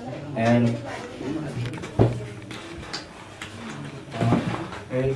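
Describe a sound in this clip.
A man speaks close by in a raised, animated voice.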